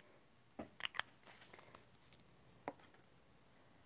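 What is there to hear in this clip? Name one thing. Tools knock and clatter lightly on a table.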